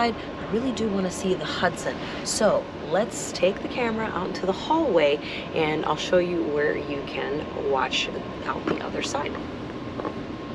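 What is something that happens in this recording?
A young woman talks animatedly and close by.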